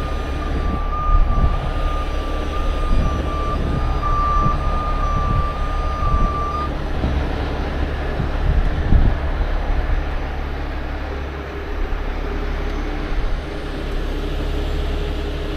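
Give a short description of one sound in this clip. A heavy truck engine idles nearby.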